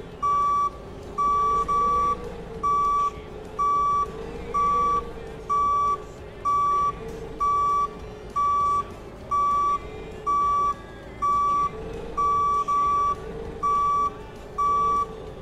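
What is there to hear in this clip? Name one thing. A forklift engine hums steadily.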